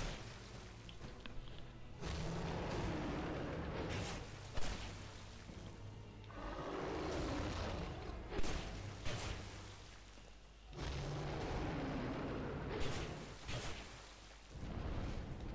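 A dragon roars loudly.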